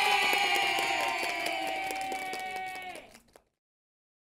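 A group of people clap their hands.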